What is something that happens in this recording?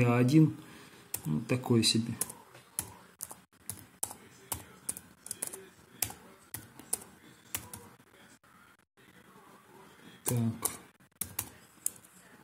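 Keyboard keys click in quick, uneven taps.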